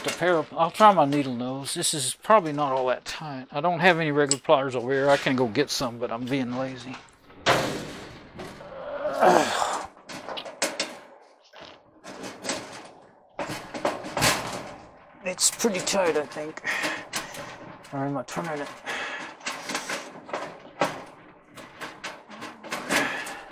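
Metal parts and wires click and rattle.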